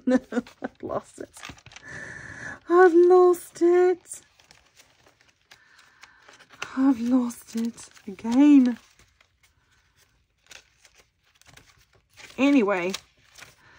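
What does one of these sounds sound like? Paper pages rustle and flutter as they are turned by hand.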